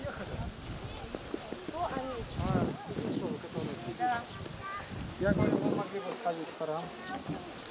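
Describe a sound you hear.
A group of women and children chatter outdoors.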